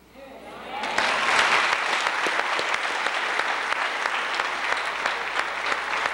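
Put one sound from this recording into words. A crowd of young people cheers loudly.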